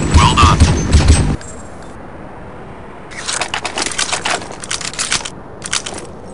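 A rifle fires rapid loud bursts.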